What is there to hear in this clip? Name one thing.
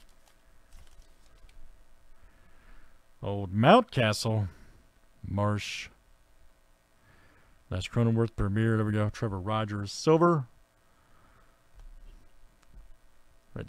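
Trading cards rustle and slide as hands flip through them.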